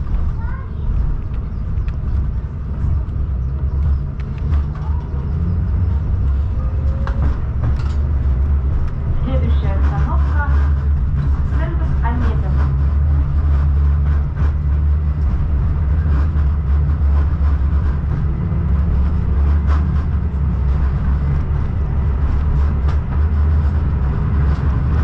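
A vehicle's engine hums low and steady while driving.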